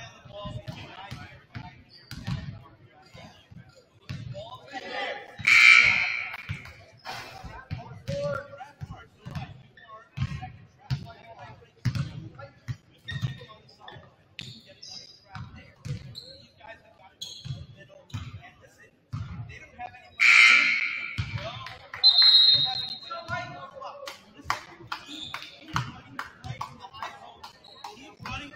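A crowd murmurs and calls out from the stands.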